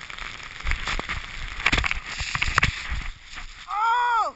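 Snow crunches and rustles loudly close by.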